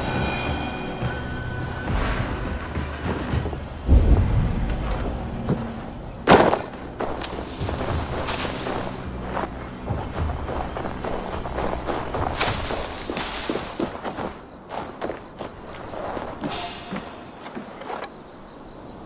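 Footsteps thud and crunch on snow and wooden boards.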